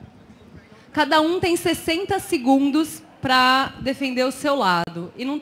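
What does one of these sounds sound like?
A woman speaks with animation through a microphone over loudspeakers.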